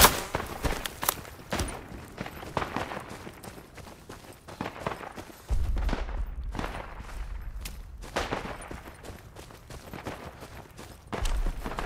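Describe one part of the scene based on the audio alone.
Footsteps crunch over dry ground and brush.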